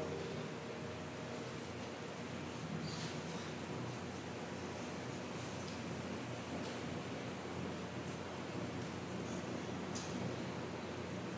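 An acoustic guitar strums gently.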